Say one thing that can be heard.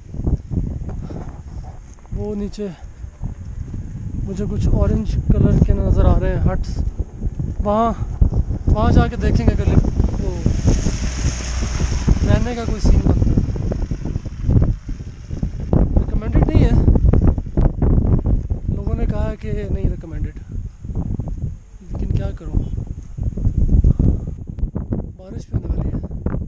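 Wind blows against a microphone outdoors.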